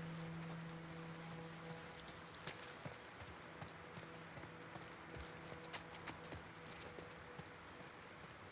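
Footsteps tread softly on a hard floor.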